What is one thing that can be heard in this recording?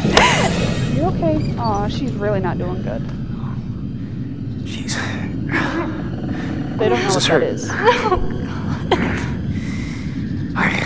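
A young woman gasps and whimpers in pain.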